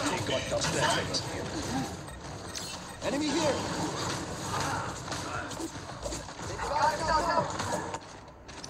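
Video game sound effects play throughout.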